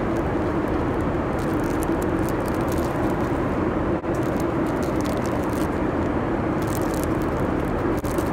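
A plastic wrapper crinkles and rustles in a hand.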